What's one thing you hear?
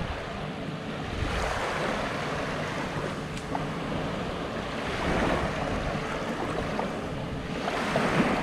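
Small waves lap gently on the shore.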